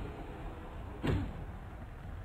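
A body slams heavily onto a wrestling mat with a thud.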